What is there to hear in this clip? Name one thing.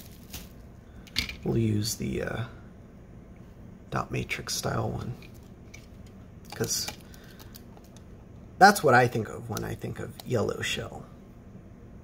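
Plastic parts click and clatter as they are handled and fitted together.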